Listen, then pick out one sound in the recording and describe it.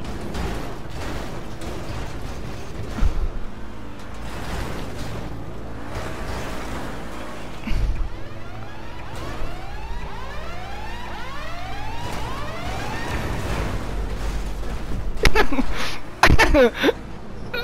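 Cars crash into each other with loud thuds.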